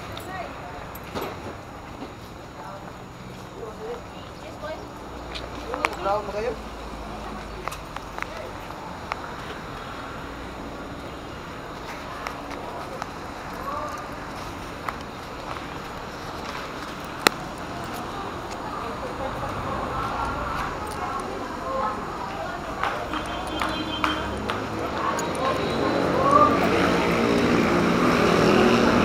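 Footsteps tap on a hard walkway.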